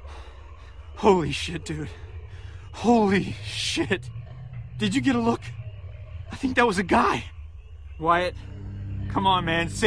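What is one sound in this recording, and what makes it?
A man speaks with agitation up close.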